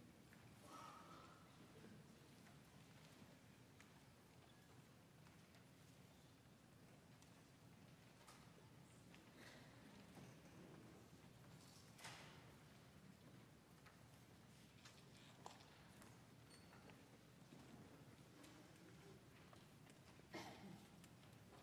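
An audience murmurs quietly in a large echoing hall.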